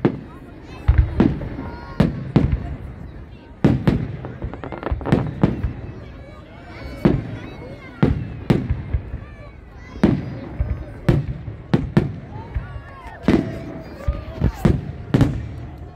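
Fireworks crackle and fizz in the sky.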